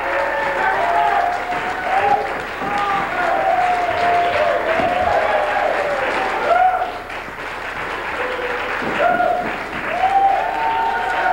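Two acoustic guitars play a lively tune.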